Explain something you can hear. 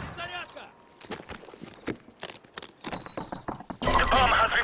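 Rapid clicks sound as an explosive charge is armed.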